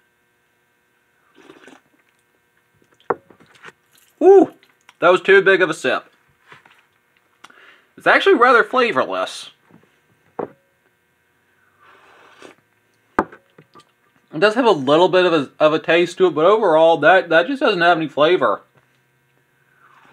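A young man slurps liquid from a bowl.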